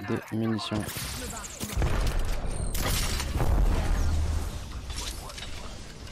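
Gunshots crack from a game.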